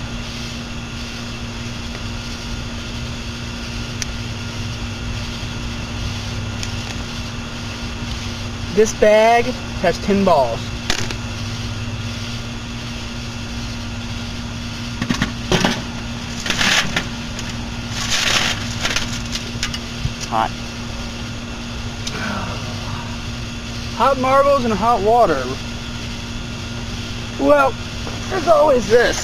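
A microwave oven hums steadily.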